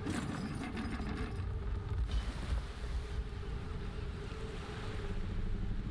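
Water splashes loudly against a ship's hull.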